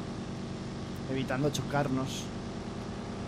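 A man speaks briefly into a microphone, close by.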